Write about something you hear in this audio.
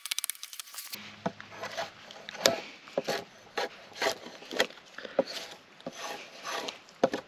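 A drawknife scrapes and shaves along a wooden pole.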